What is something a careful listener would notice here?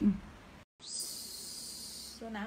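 A spray bottle hisses as it sprays.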